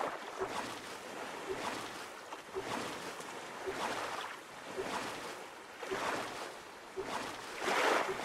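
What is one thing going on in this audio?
An oar splashes through water in steady, repeated strokes.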